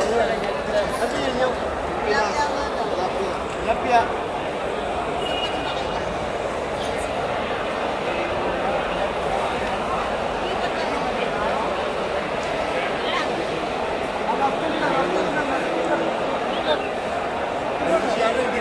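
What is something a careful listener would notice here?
A crowd chatters all around in a large echoing hall.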